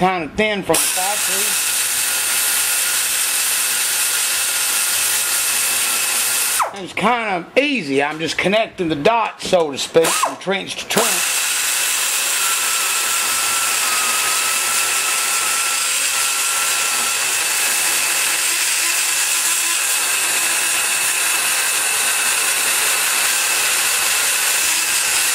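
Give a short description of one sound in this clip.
A small rotary grinder whines steadily as it grinds metal.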